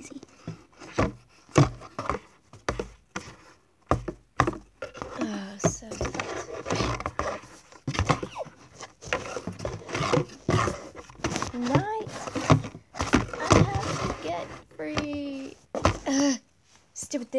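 A plastic toy horse taps and knocks against a cardboard box.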